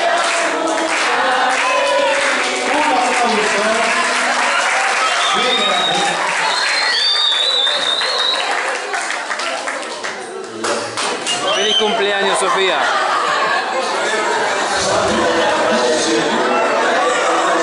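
A crowd of men and women chatter loudly indoors.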